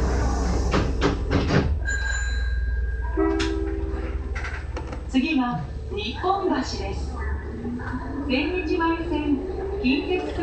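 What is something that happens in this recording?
A subway train rumbles low and steadily as it pulls out of a station.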